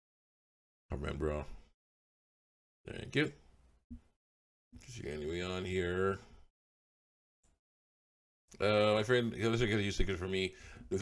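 A man speaks calmly and close into a microphone, in short phrases with pauses.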